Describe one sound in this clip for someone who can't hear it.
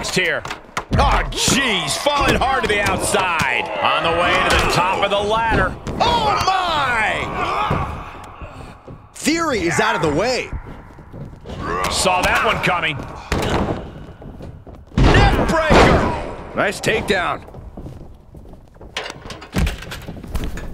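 Bodies slam onto a mat with heavy thuds.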